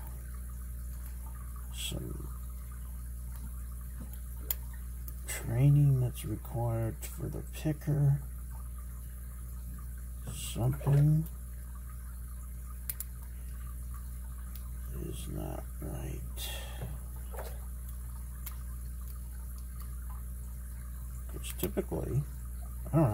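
Metal picks click and scrape softly inside a padlock.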